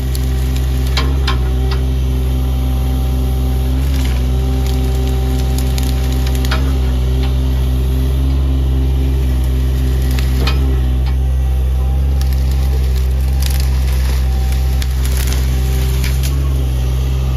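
Branches and brush crack and snap under an excavator bucket.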